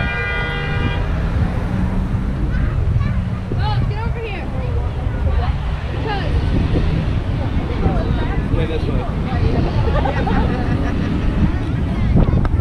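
Cars rumble past on a busy road.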